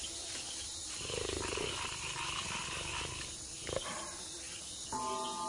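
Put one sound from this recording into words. A jaguar snarls with a low growl.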